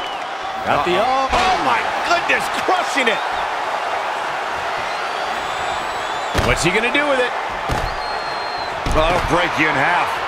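Heavy thuds of bodies hitting a wrestling mat.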